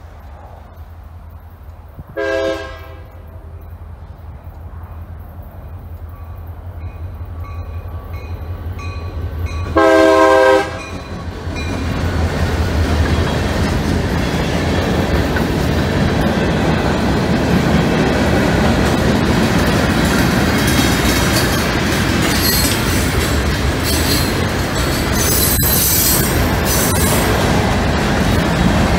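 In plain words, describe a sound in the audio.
A crossing bell rings steadily.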